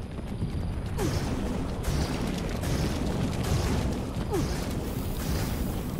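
Magic spells burst with whooshing blasts.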